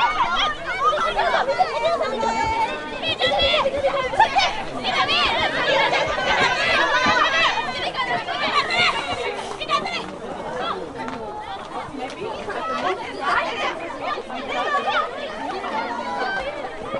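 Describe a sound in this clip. Young women shout and call to one another across an open field.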